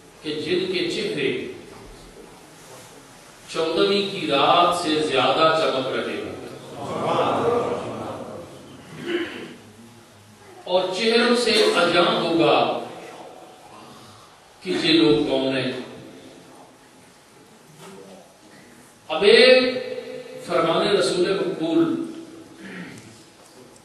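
An elderly man speaks slowly and with feeling into a microphone, in short phrases with pauses.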